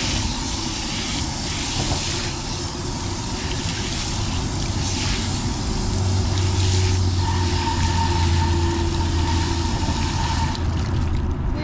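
Water from a hose spray nozzle hisses and splashes onto a tyre and wheel.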